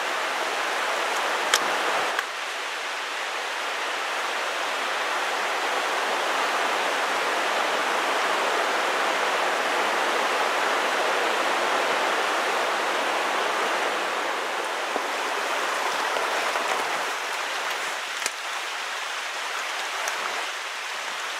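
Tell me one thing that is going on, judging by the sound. A shallow creek babbles over stones.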